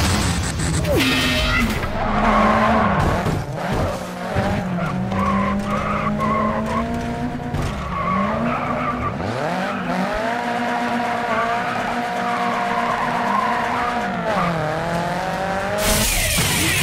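A car engine revs high and whines as a car drifts.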